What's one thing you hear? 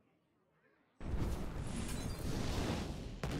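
A fiery blast roars loudly.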